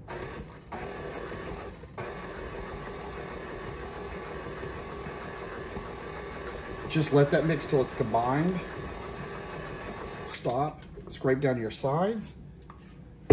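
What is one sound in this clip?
A stand mixer whirs steadily as it beats.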